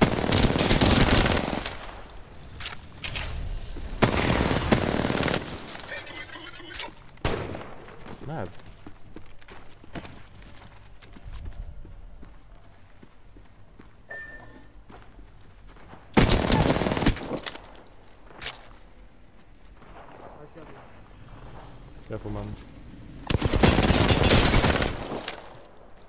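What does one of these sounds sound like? Automatic gunfire rattles in rapid, loud bursts.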